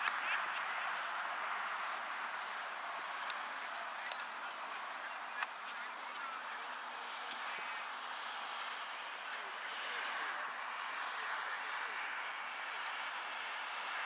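Young players call out to each other in the distance.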